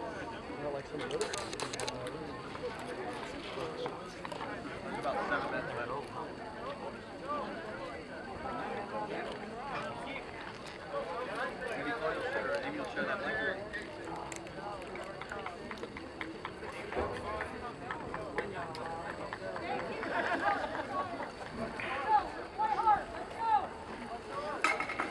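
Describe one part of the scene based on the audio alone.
Young men call out and talk to one another outdoors on an open field.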